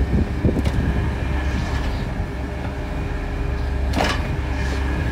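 An excavator bucket scrapes and knocks against soil and stones.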